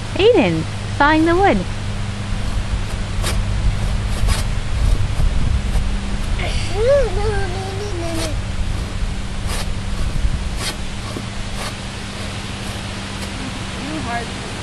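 A hand saw rasps back and forth through a branch.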